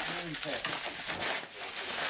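Plastic wrapping rustles and crinkles as it is handled.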